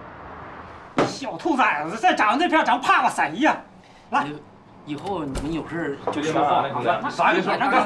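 A man speaks loudly and harshly, close by.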